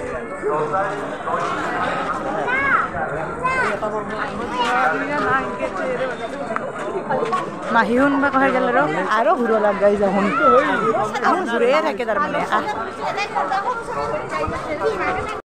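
A crowd of men and women chatters all around, close by.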